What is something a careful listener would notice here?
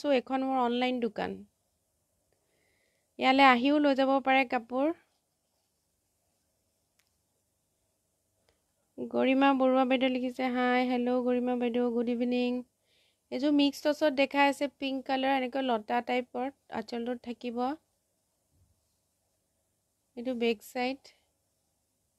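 A young woman speaks with animation close by, in bursts with pauses.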